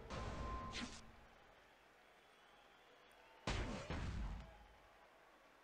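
Game sound effects thud as wrestlers hit each other.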